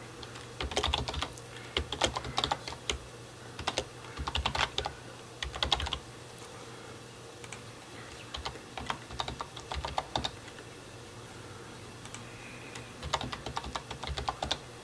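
Keyboard keys click and clatter in quick bursts of typing.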